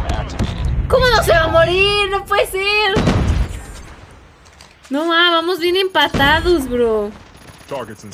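A young woman shouts and laughs with animation close to a microphone.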